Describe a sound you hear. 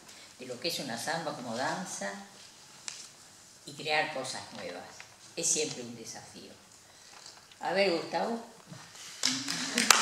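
An elderly woman speaks calmly into a microphone in an echoing hall.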